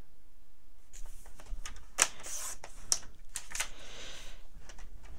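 A paper trimmer blade slides along, cutting through card.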